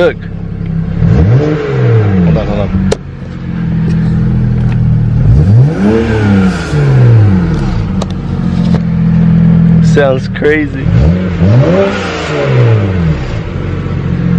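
A car engine revs up and down repeatedly.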